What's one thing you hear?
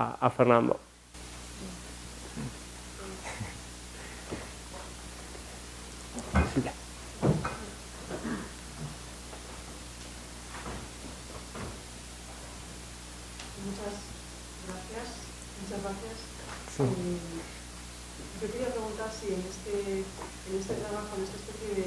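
A middle-aged man speaks calmly into a microphone, heard over a loudspeaker in a large room.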